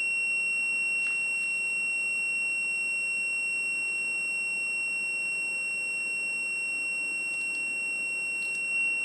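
Thin wires rustle and tick softly as they are handled.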